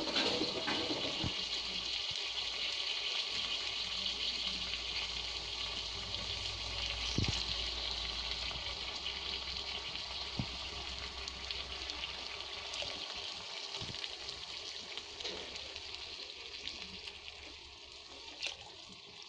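Rice sizzles and crackles steadily in a hot pan.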